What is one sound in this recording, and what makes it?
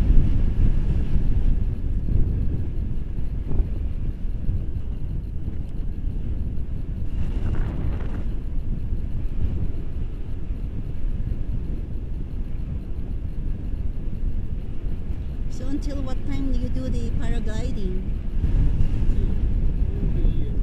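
Strong wind rushes and buffets steadily over a microphone outdoors.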